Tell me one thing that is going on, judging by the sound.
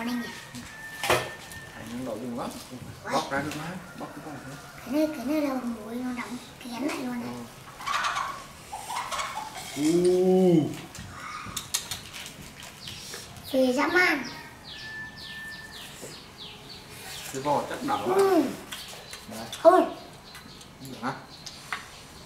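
A young man and a small boy talk casually close by.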